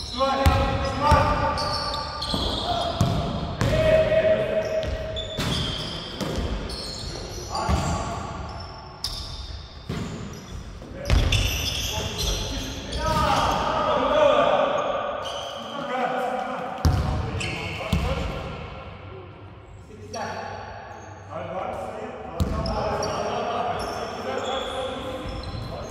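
Sneakers squeak on a polished wooden floor.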